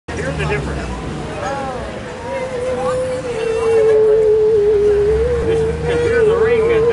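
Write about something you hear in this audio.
A musical saw is bowed, holding a long, singing tone that wavers slightly.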